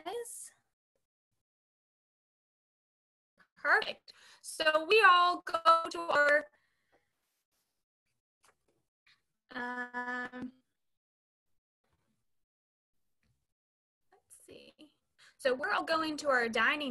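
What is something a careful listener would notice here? A woman speaks with animation over an online call, in short bursts with pauses.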